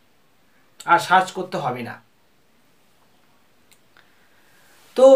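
A young man speaks calmly, close up.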